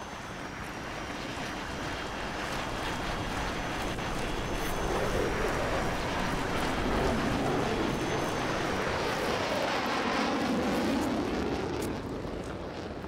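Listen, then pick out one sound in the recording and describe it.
A jet roars overhead, swelling and then fading away.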